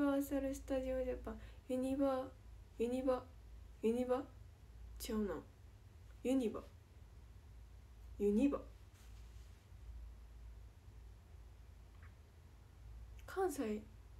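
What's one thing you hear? A young woman speaks calmly and softly close to a microphone, with pauses.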